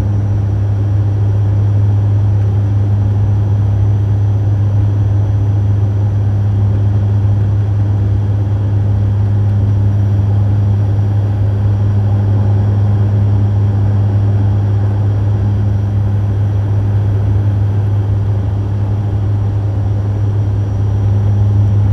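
An aircraft engine drones steadily from close by.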